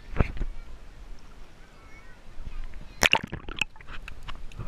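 Water splashes at the surface.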